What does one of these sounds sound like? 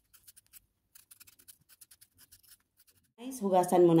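A knife peels a potato with soft scraping.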